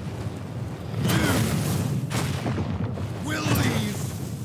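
A magical blast roars and crackles.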